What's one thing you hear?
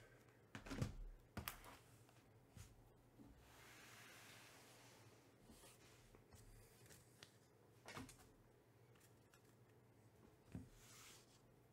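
Cardboard boxes knock and thump onto a table.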